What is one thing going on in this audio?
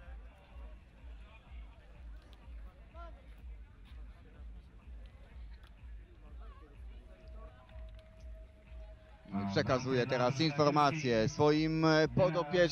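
Several men talk quietly together outdoors.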